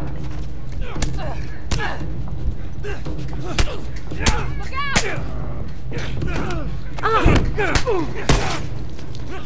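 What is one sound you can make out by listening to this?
Heavy punches thud in a brawl.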